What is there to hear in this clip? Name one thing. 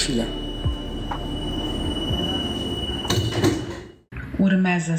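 A metro train rumbles and hums.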